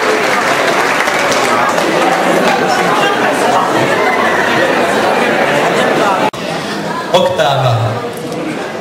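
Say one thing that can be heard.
A crowd chatters loudly in a large echoing hall.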